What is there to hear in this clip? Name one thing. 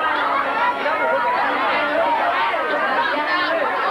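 A teenage girl speaks into a microphone with excitement.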